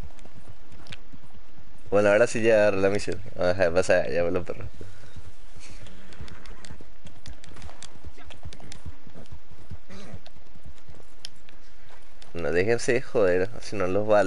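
A horse trots with hooves thudding on a dirt trail.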